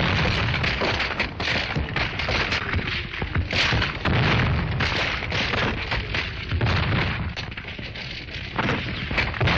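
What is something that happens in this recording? Rifles fire in rapid sharp cracks.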